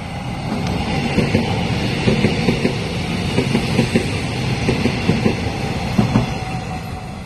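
Train wheels clack rhythmically over the rail joints.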